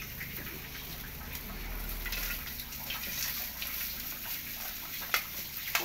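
A metal spatula scrapes vegetables off a plate into a pan.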